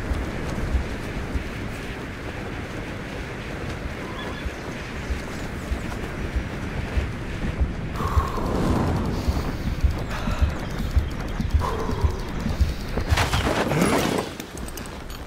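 Wind rushes loudly past a wingsuit flyer.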